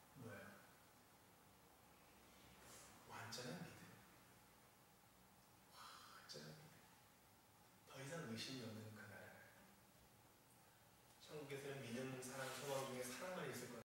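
A man speaks calmly into a microphone, with pauses between phrases.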